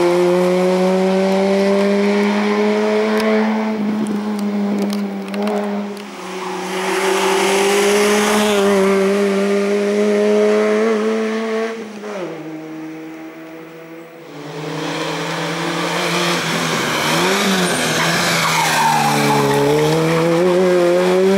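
A rally car engine revs hard and roars loudly, rising and falling with gear changes.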